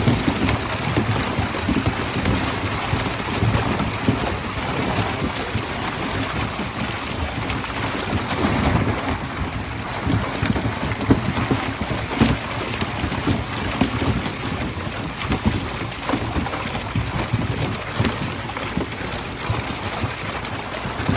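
Fish flap and slap against each other in a net.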